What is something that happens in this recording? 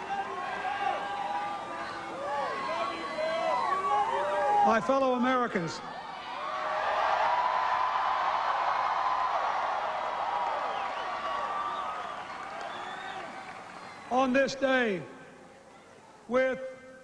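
A large crowd cheers and shouts outdoors, then quiets down.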